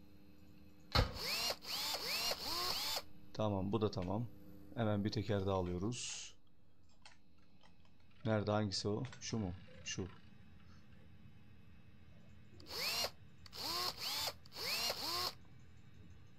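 A pneumatic wrench whirs in short bursts.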